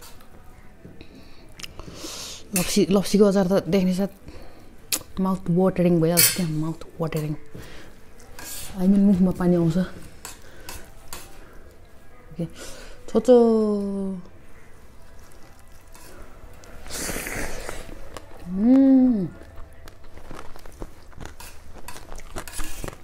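Fingers squelch and scrape through rice on a plate.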